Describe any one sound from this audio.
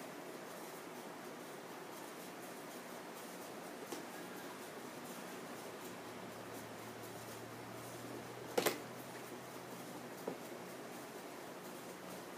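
Hands knock and handle a cardboard box on a wooden table.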